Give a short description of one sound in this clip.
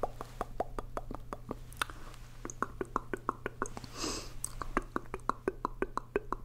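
A man makes wet clicking mouth sounds into cupped hands close to a microphone.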